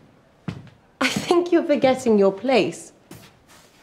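A young woman speaks with feeling nearby.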